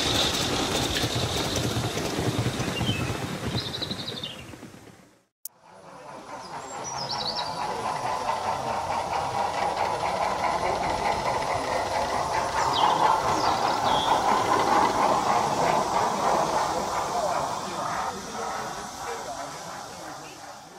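A model train rumbles and clatters along its rails outdoors.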